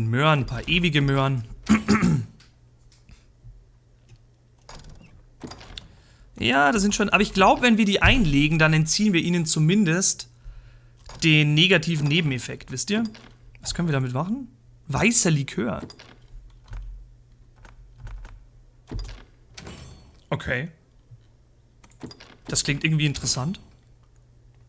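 A young man talks casually and animatedly into a close microphone, in bursts with pauses.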